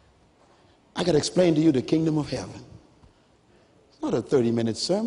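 A man speaks with animation through a microphone in a large hall.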